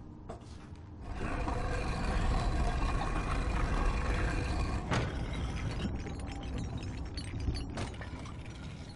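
A heavy stone block scrapes along a stone floor.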